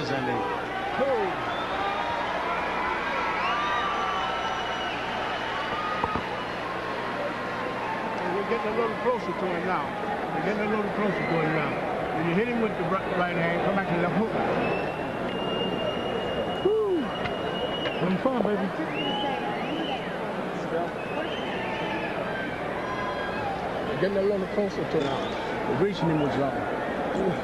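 A large crowd cheers and murmurs, echoing in a big arena.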